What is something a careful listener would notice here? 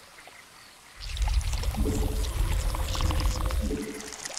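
Swarming insect-like creatures skitter and hiss.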